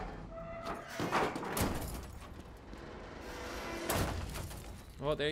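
A car crashes down onto the ground with a loud metallic bang.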